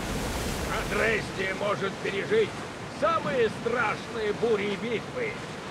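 A group of men sing loudly nearby.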